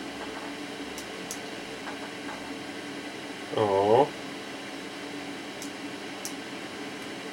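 A small tool clicks and taps lightly.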